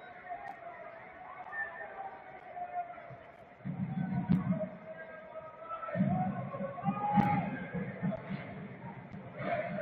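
A large crowd chants and sings across an open stadium.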